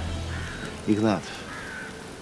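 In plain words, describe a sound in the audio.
An elderly man speaks quietly and gravely.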